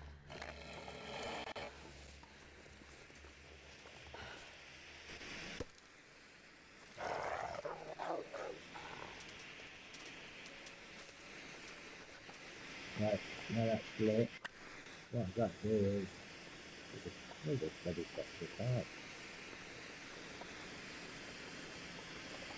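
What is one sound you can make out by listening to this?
A flare hisses steadily as it burns.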